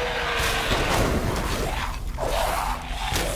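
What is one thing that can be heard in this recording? An explosion booms with a roar.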